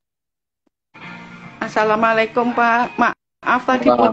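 A middle-aged woman speaks over an online call.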